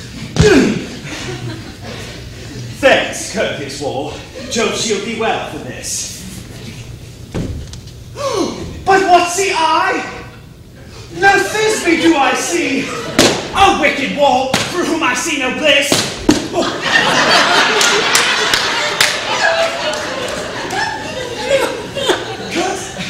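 A man speaks loudly and theatrically in a hall.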